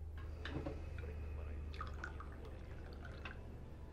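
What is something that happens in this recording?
A man pours tea from a teapot into a cup.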